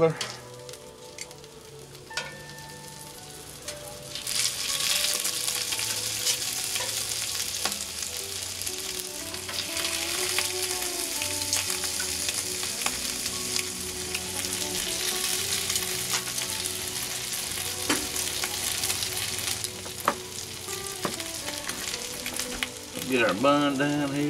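Sausages sizzle and spit on a hot griddle.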